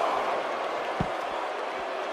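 A body thuds heavily onto a mat.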